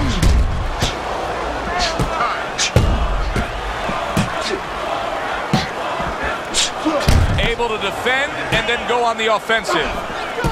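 A crowd murmurs and cheers steadily.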